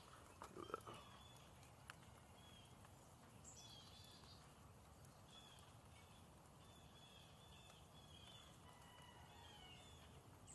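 A light wind blows softly outdoors.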